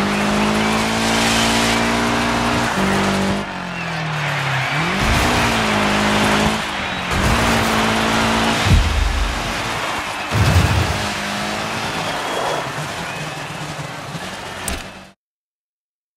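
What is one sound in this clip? A rally car engine roars and shifts gears at speed.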